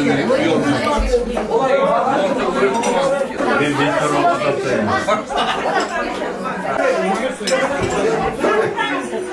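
Dishes and cups clink softly.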